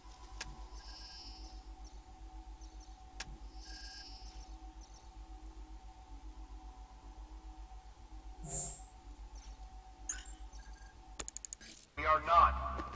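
Soft electronic menu beeps chime over a low hum.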